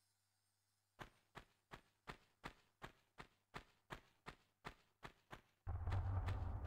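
Footsteps thud quickly on stone.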